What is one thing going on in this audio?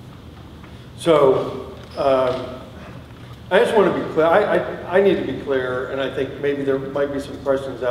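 A man speaks into a microphone, heard through loudspeakers in a large echoing hall.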